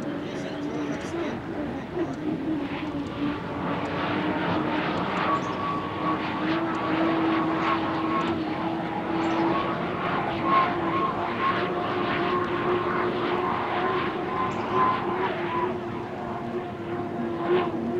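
A racing boat's engine roars and whines steadily at high speed.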